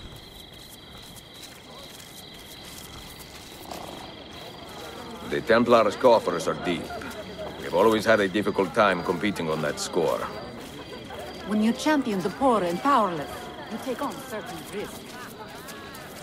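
Footsteps tread on stone paving at a steady walking pace.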